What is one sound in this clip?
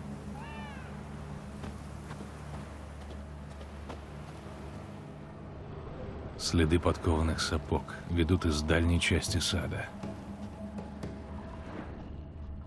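Footsteps tread on cobblestones.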